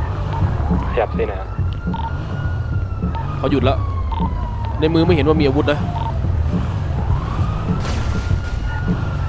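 A siren wails slowly up and down nearby.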